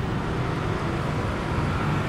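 Motorbike engines buzz nearby.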